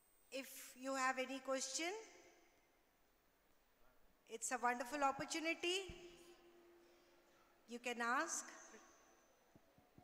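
A man sings into a microphone through a loudspeaker in a large echoing hall.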